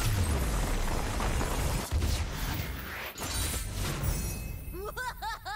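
A loud swirling whoosh roars as a game effect bursts.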